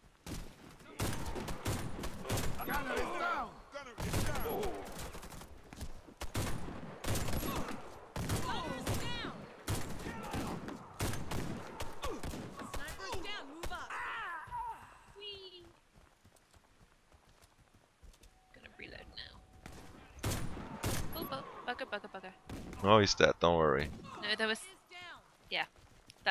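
Rifle shots crack out one after another, loud and sharp.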